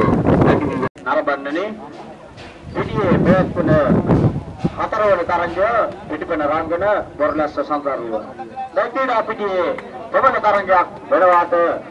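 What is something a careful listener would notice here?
A group of young men talk and call out together close by.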